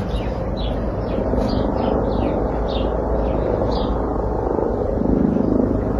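A cat scratches and digs in loose soil.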